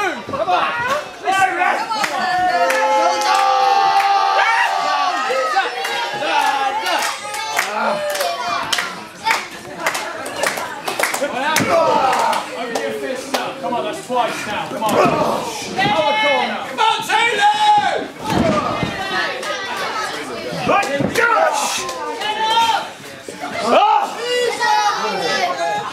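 A crowd of spectators chatters and cheers in an echoing hall.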